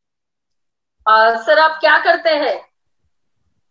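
A woman speaks calmly, close to the microphone.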